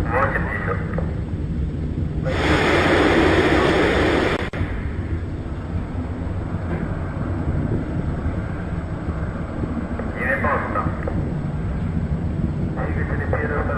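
A Soyuz rocket roars far off as it climbs away.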